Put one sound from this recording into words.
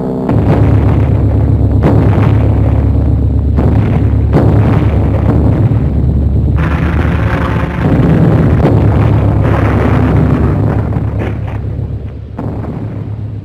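Huge explosions boom and rumble one after another.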